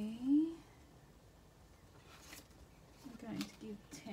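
Paper rustles softly as a card is handled.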